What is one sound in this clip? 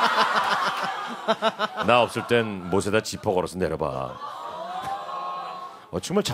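Men talk and laugh with animation into microphones.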